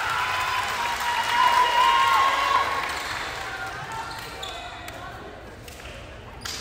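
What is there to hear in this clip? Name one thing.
A crowd cheers and shouts in a large echoing gym, then quiets down.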